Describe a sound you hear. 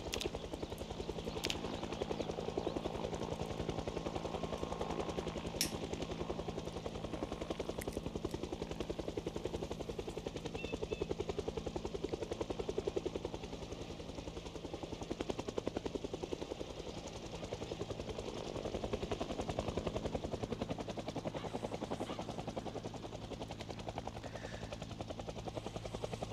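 A van engine idles with a steady low rumble.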